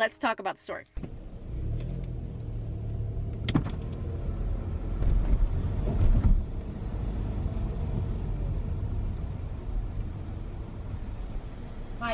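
A car engine hums low and steady as the car drives.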